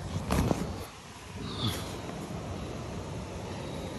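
Tent fabric rustles and flaps close by.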